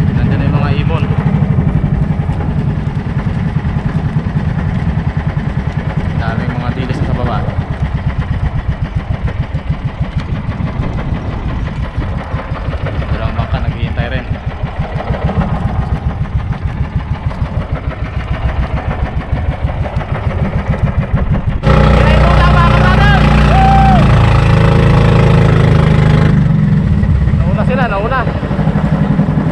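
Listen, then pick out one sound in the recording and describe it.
A boat engine chugs steadily at a fast, even beat.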